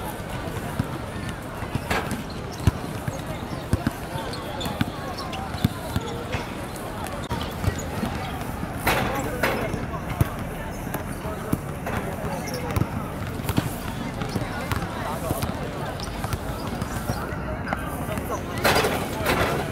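Boys chatter and call out nearby, outdoors.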